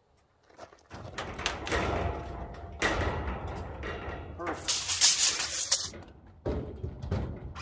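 Wooden boards knock and thud as a frame is moved.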